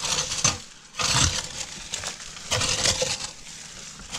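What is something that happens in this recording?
A metal tool scrapes against loose rock.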